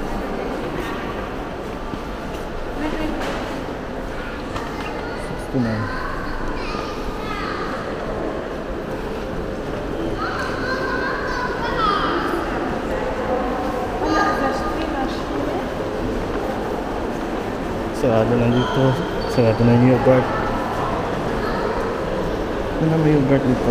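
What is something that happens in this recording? Indistinct voices murmur and echo through a large hall.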